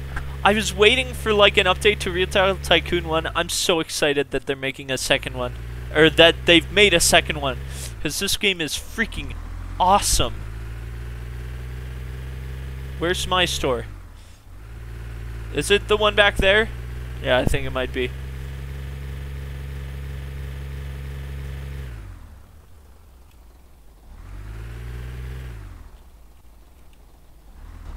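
A car engine hums steadily, then revs up and down.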